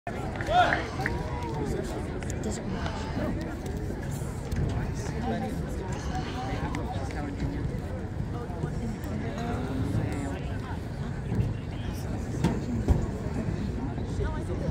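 Men and women chat casually nearby in an outdoor crowd.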